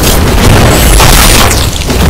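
A sword slashes with a crackling, whooshing burst of energy.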